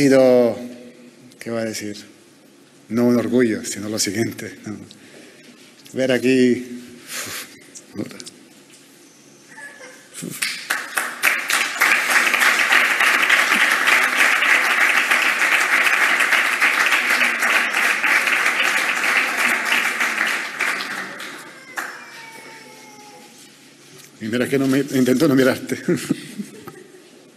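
A young man speaks haltingly into a microphone.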